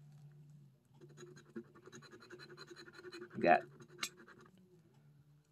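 A coin scratches rapidly across a card.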